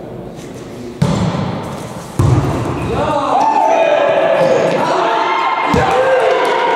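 A ball thuds sharply as it is hit, echoing in a large hall.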